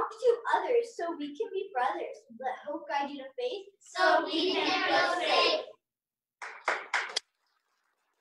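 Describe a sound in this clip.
A young girl speaks into a microphone, heard through an online call.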